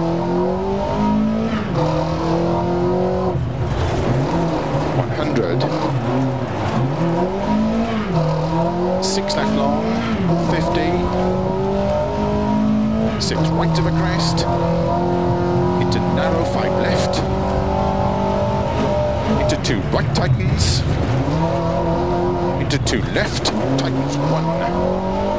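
A rally car engine roars loudly, revving up and down as the gears change.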